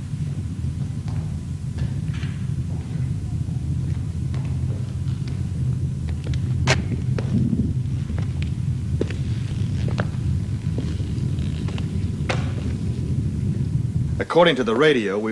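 Aircraft engines drone overhead in a low, steady rumble.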